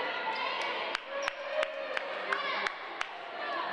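A volleyball is struck and bounces in an echoing gym.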